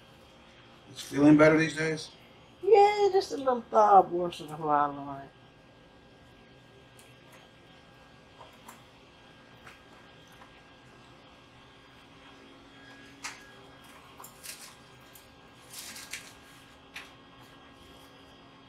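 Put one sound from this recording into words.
Small scissors snip softly, close by.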